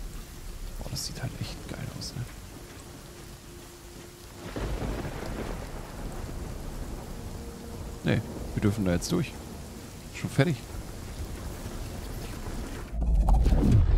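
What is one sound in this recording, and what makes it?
Flames crackle around a glowing gateway.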